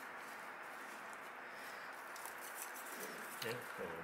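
Paper towel crinkles as it is unfolded.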